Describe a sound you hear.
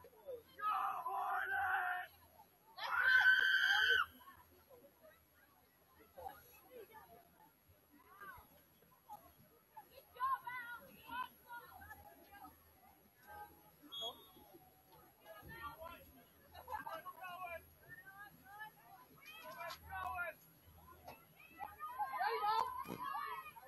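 Young women call out and shout across an open field, some way off.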